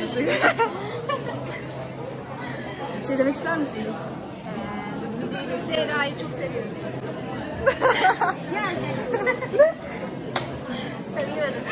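Young women laugh loudly close by.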